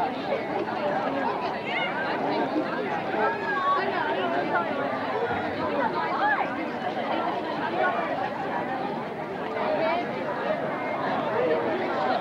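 A crowd of young people chatters and talks all around, close by.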